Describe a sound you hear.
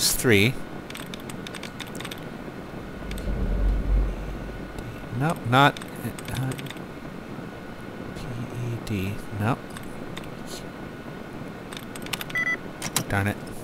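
Computer terminal keys click in quick bursts.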